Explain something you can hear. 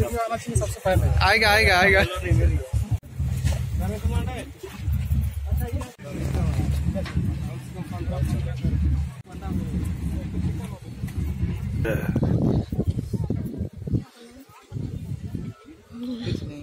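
Several people chatter outdoors.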